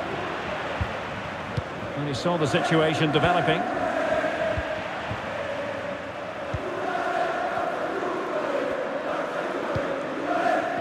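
A large crowd roars and chants steadily in an echoing stadium.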